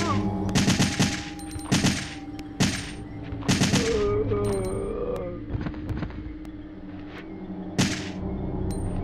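A handgun in a video game fires a series of shots.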